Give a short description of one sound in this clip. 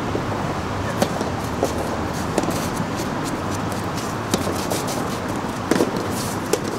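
A tennis ball is struck back and forth with rackets, with sharp pops.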